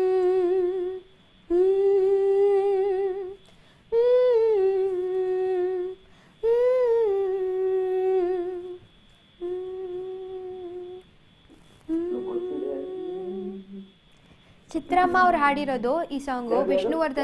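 A young woman sings long, held notes, close up, with short pauses between them.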